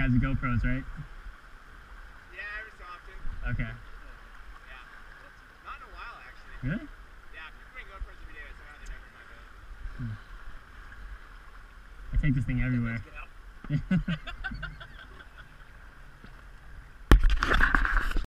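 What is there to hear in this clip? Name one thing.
Paddles splash in river water.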